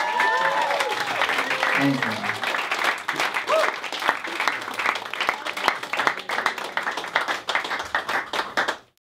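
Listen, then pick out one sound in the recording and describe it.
A crowd chatters and cheers loudly nearby.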